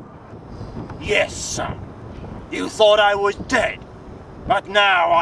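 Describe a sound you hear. A man speaks slowly and calmly, close by.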